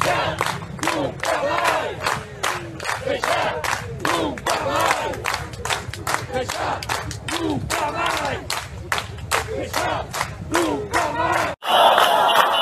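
A crowd claps in rhythm outdoors.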